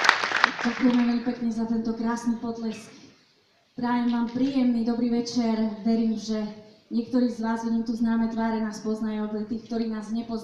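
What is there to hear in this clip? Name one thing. A young woman speaks into a microphone through loudspeakers.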